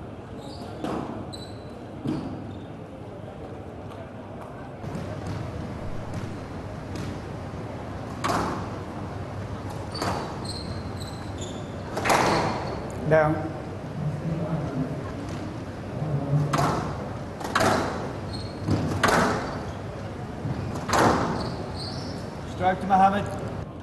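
A squash ball smacks sharply against the walls of an echoing court.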